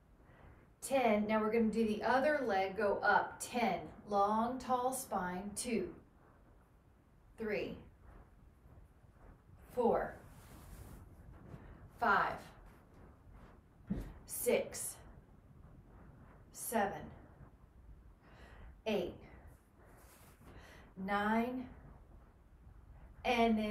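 A woman speaks clearly and calmly close by, giving instructions in short phrases.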